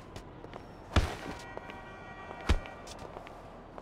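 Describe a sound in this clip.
A motorbike topples over and thuds onto hard ground.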